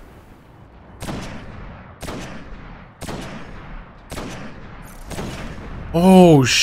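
A rifle fires a series of sharp shots.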